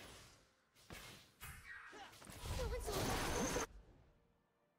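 Fantasy game sound effects whoosh and crash in short bursts.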